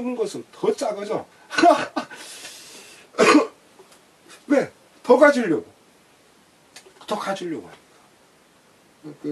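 An elderly man speaks with animation close to a microphone, in short bursts with pauses.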